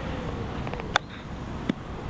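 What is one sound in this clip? A golf club strikes a ball with a short, crisp click.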